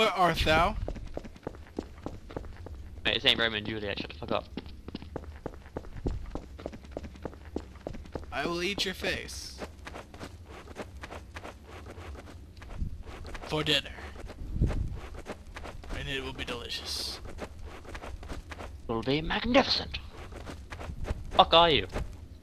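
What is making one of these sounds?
Footsteps tread quickly on a hard floor.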